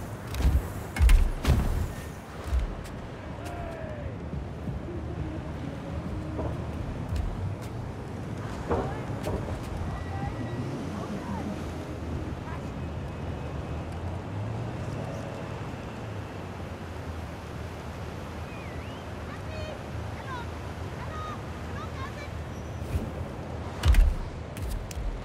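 A heavy body lands with loud thuds on a car roof.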